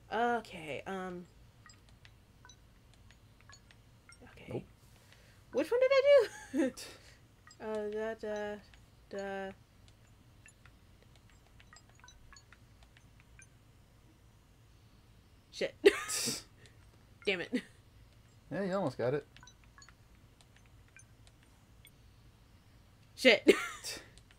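Buttons on a small keypad click softly as they are pressed.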